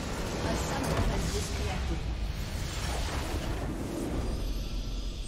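A loud game explosion booms and crackles.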